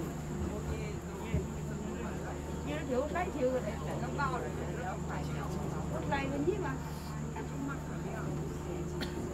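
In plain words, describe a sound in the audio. Several passengers talk nearby.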